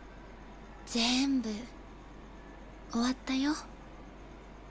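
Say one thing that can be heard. A young woman speaks quietly and sadly.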